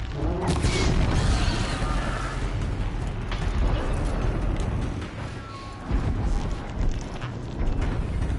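A low rumbling plays throughout.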